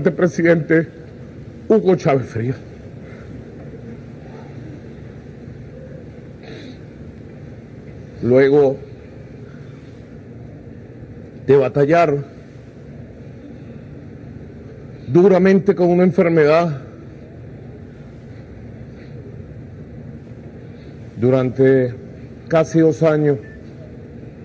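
A man speaks slowly and solemnly into a microphone, with long pauses.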